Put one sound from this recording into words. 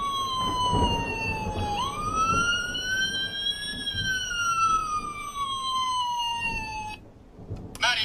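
A toy siren wails with a rising and falling electronic tone, then stops abruptly.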